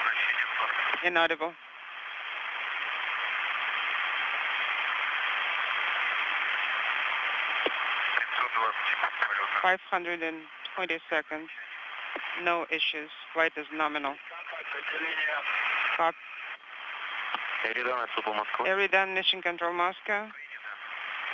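A man speaks in short bursts over a crackly radio link.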